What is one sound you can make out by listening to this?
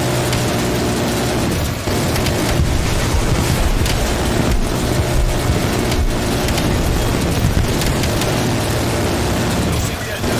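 A helicopter's engine and rotor drone steadily and loudly.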